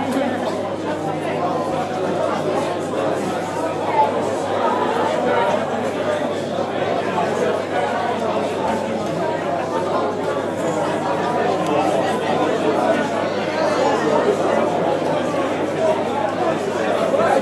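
A rock band plays loudly through amplifiers.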